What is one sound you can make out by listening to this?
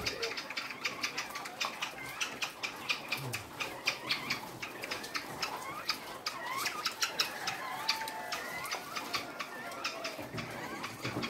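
Many small caged birds chirp and cheep rapidly and constantly.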